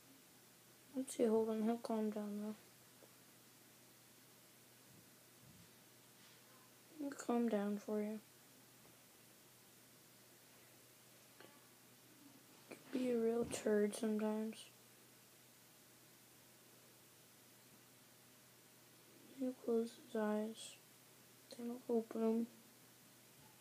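A boy speaks calmly close by in short bursts.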